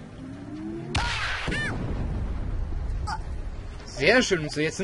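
A cartoonish explosion booms and rumbles.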